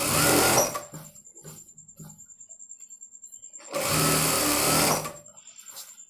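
A sewing machine whirs in short bursts.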